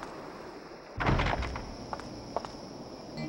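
A heavy wooden gate creaks and bangs shut.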